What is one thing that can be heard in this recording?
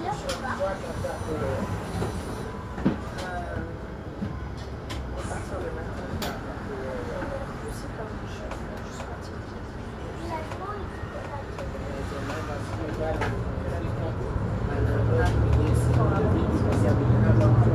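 A bus engine hums steadily from inside the bus and grows louder as it speeds up.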